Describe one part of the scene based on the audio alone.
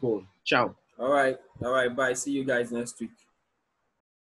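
A young man speaks calmly through an online call.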